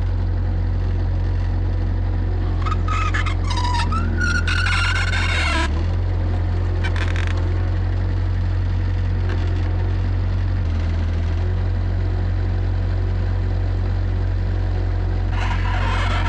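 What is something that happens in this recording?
A diesel engine idles close by with a steady low rumble.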